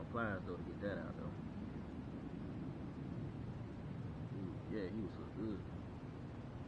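A man talks casually close by, outdoors.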